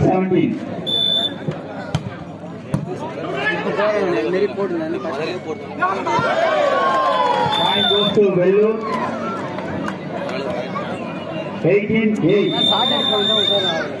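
A whistle blows shrilly.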